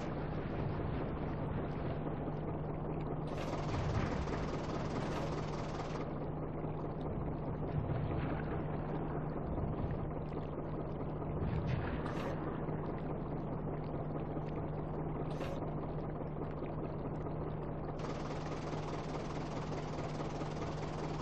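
A tank engine rumbles steadily.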